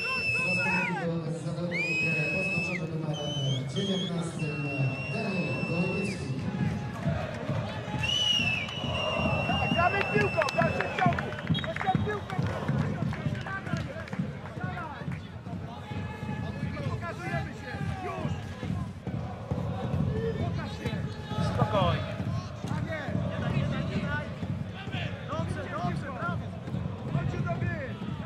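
A crowd chants in an open stadium.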